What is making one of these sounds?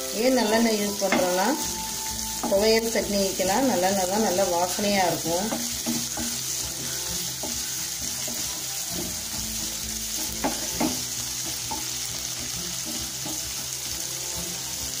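Vegetables sizzle in hot oil.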